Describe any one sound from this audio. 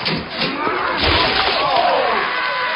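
Liquid splashes onto a man.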